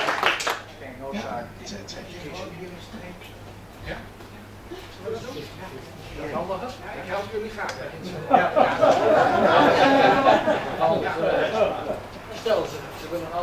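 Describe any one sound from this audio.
A man speaks through a loudspeaker in an echoing room.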